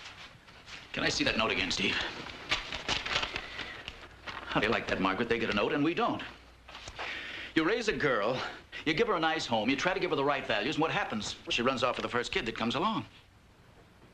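A man speaks loudly and with exasperation, close by.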